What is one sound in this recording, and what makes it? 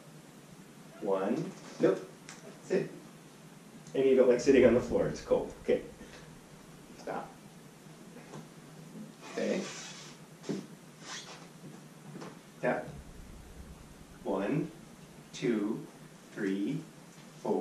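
A man gives commands to a dog nearby, speaking firmly.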